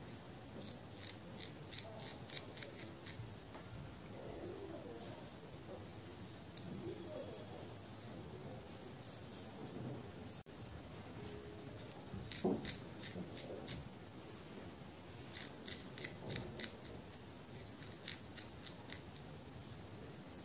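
Fingernails scratch and rustle through hair close up.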